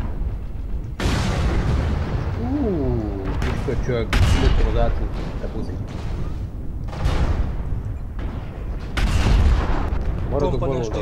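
Heavy guns fire in loud, sharp bursts.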